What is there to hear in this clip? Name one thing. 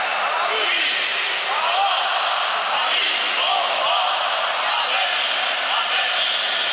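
A large stadium crowd cheers and chants, echoing under the roof.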